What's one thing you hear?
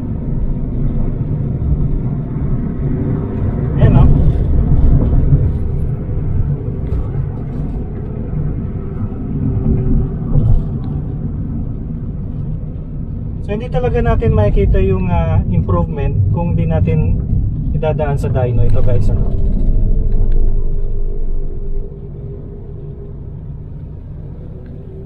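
A car's engine hums and its tyres rumble steadily on the road, heard from inside the car.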